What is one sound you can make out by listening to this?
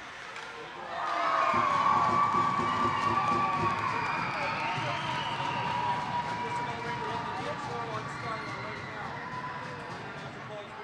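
A crowd cheers and shouts loudly in an echoing rink.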